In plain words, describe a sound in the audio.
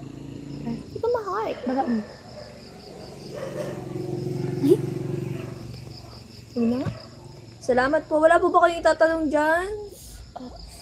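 A young woman talks close by, with animation.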